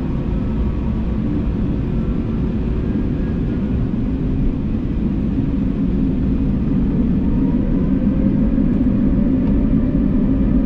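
An aircraft engine roars steadily inside the cabin and slowly grows louder.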